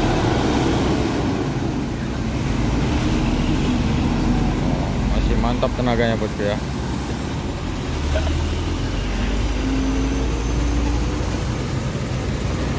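A heavy truck engine rumbles loudly as the truck drives slowly past.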